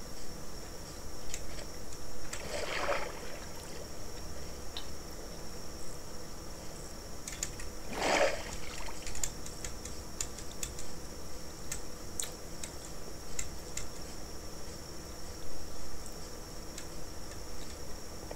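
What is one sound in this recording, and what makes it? Keyboard keys clack quickly under fingers.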